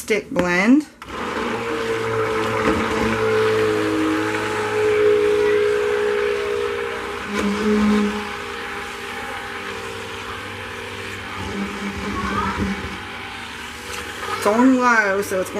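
A stick blender whirs steadily in a liquid.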